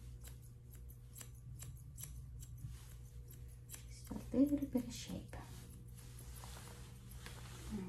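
Scissors snip through a dog's fur.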